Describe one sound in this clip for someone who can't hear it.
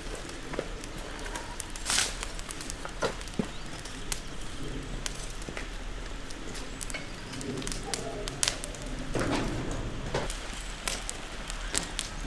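Footsteps scuff across paving stones outdoors.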